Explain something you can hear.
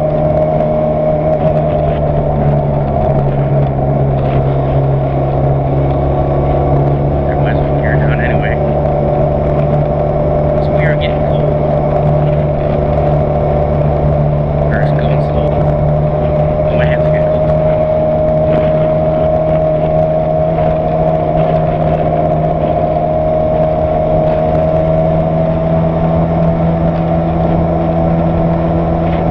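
Wind rushes past a moving motorcycle.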